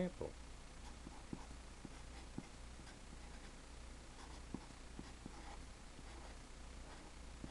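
A felt-tip marker squeaks and taps on paper.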